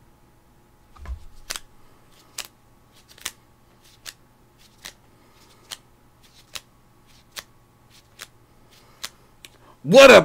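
Rubber gloves snap and squeak as they are pulled on.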